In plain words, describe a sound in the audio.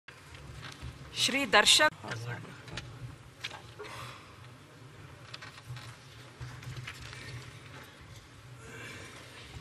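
Many people murmur in a large echoing hall.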